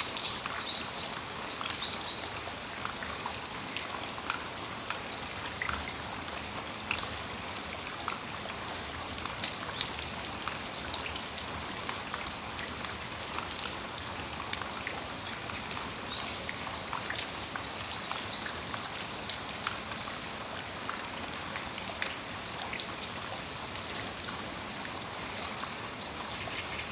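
Raindrops drip and tap onto a metal awning.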